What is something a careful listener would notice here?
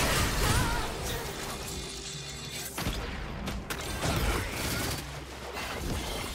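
Fantasy battle effects of spells and blows whoosh and crackle.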